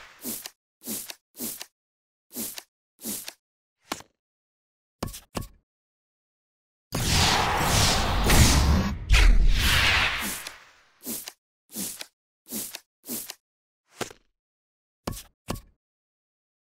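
Short whooshing swipes play in quick succession as cards flip.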